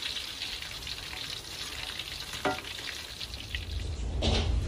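Oil sizzles as food fries in a pan.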